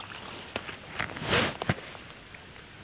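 A fishing lure splashes into the water.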